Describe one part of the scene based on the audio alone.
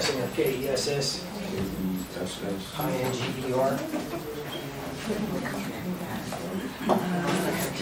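A man speaks calmly to a group.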